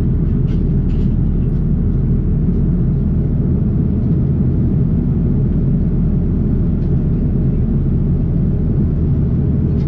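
A steady low roar of an Airbus A330 jet cabin fills the air at cruise.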